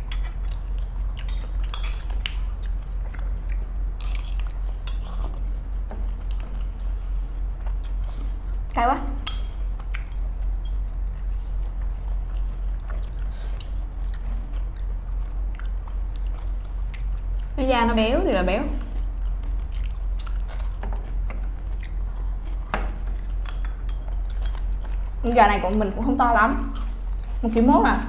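Soft chewing and slurping sounds come from close by.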